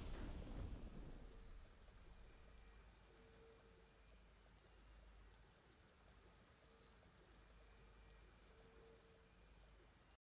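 A triumphant fanfare sounds, then fades to a soft, quiet tune.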